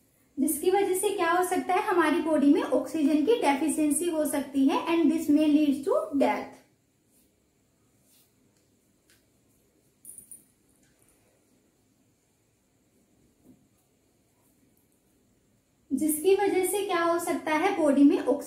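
A young woman speaks clearly and explains, close to a microphone.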